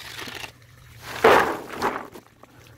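Peanuts in the shell pour into a plastic tub.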